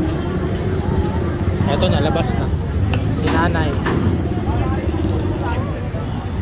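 A crowd murmurs outdoors on a busy street.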